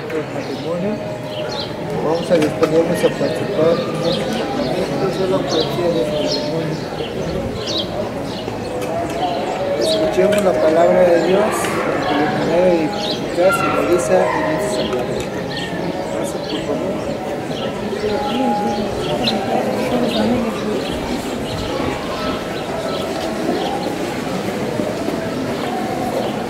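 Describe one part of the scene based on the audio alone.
A crowd chatters outdoors nearby.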